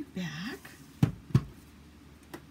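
A plastic machine is set down on a hard surface with a knock.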